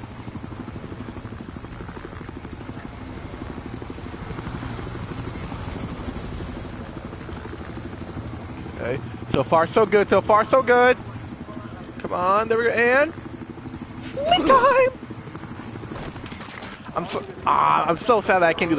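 A helicopter's rotor thumps steadily in the distance.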